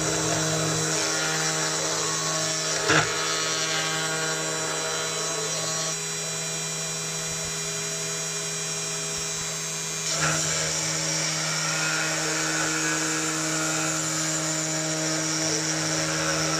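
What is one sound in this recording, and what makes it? A milling machine spindle whines steadily.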